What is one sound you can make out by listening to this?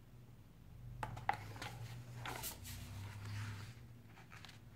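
Book pages rustle and flip.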